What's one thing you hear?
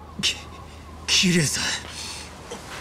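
A man stammers out a startled call.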